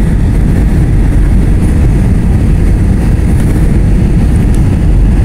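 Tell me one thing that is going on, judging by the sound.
Jet engines roar steadily with a deep, loud rumble.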